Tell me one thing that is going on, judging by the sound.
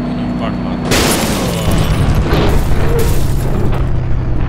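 A car crashes with a loud crunch of metal.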